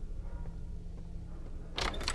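A locked door handle rattles.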